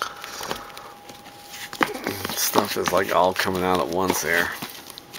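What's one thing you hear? Plastic cases click and rattle as a hand brushes against them.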